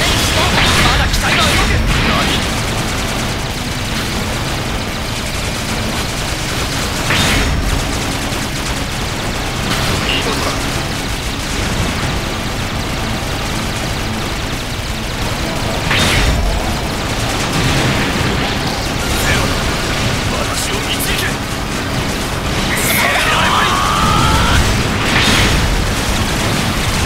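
Rocket thrusters roar steadily.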